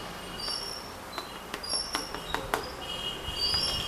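A metal spoon taps and scrapes against a plastic plate.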